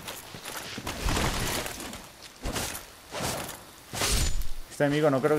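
A sword strikes a creature with heavy thuds.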